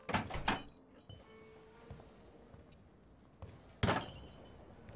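A door opens and closes with a thud.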